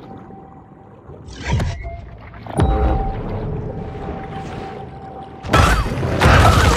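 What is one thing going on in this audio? A creature swims underwater with muffled whooshing water.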